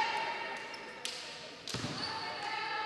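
A volleyball is struck with sharp smacks in a large echoing hall.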